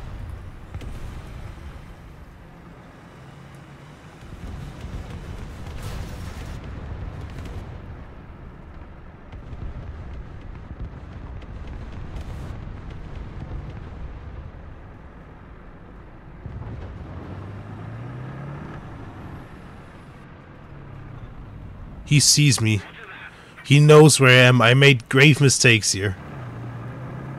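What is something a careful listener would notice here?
An armoured vehicle's engine rumbles steadily, rising and falling as it drives.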